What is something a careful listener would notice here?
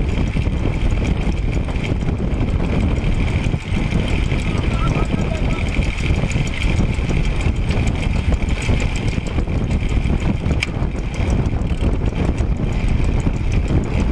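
A bicycle's tyres hum steadily on the road.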